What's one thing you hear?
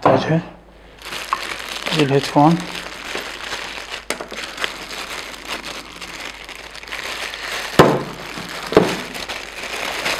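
A plastic wrapping crinkles and rustles as it is handled.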